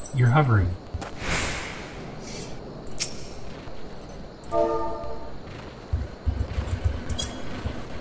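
Combat sound effects whoosh and clash.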